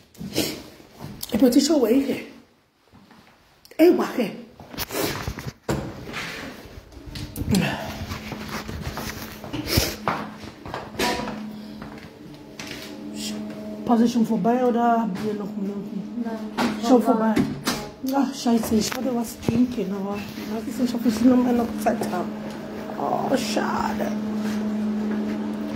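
A woman talks with animation, close up.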